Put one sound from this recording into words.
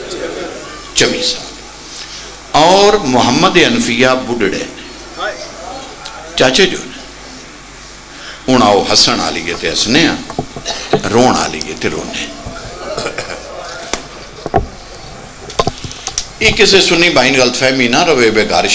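A man speaks passionately into a microphone over loudspeakers, in a large echoing space.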